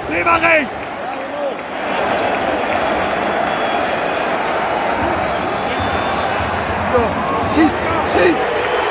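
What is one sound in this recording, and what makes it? Nearby fans shout out loudly.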